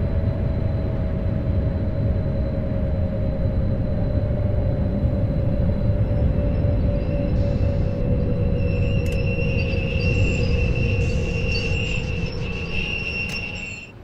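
Train brakes squeal with a falling whine.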